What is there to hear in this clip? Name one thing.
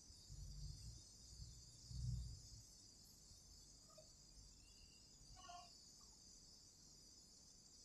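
Ceiling fans whir steadily.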